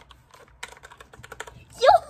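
Keyboard keys click under fingers.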